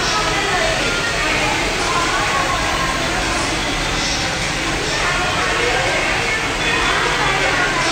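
A hair dryer blows with a steady roar close by.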